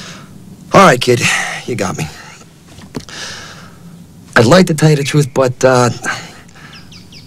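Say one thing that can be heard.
A young man speaks wearily up close.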